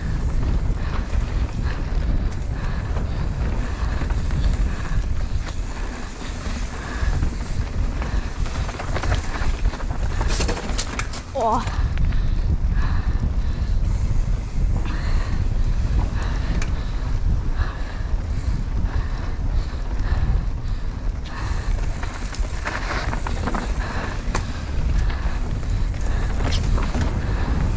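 Wind rushes loudly past a rider moving fast downhill.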